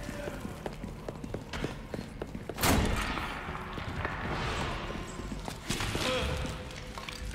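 Armour clinks with each step.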